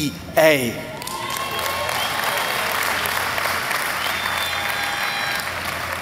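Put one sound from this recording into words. A crowd cheers and applauds.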